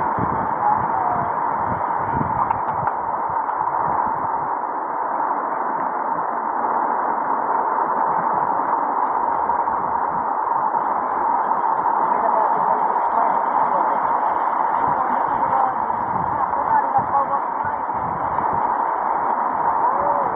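Floodwater rushes and splashes steadily.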